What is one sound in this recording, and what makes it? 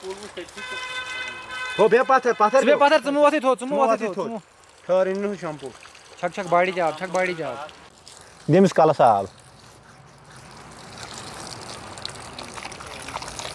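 Water pours from a hose and splashes onto the ground.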